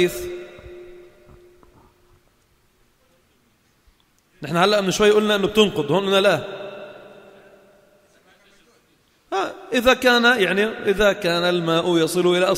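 A man speaks with animation into a microphone in an echoing hall, pausing between phrases.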